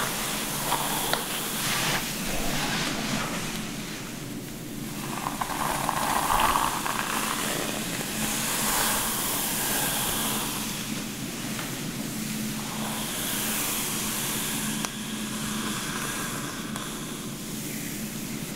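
Fingers rustle through hair, close by.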